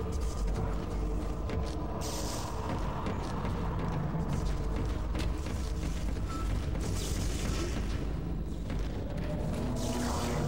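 Heavy boots clank on a metal floor.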